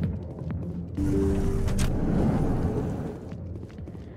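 A sliding door whooshes open.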